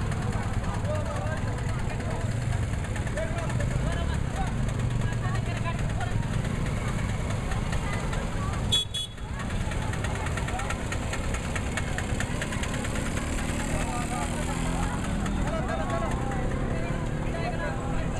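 A large crowd of women chatters outdoors.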